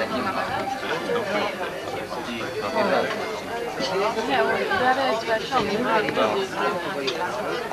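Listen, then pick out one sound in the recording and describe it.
Plates clink onto a table as a waiter serves food.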